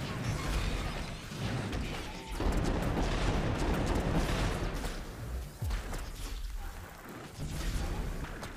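Game spells crackle and zap in a busy battle.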